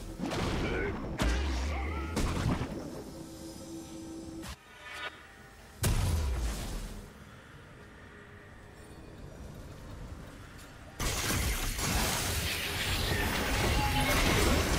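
Video game spell effects whoosh and crackle in bursts.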